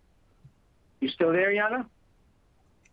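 A woman speaks briefly over an online call.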